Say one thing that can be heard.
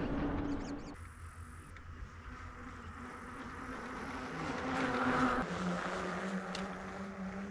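Bicycle tyres roll over smooth pavement.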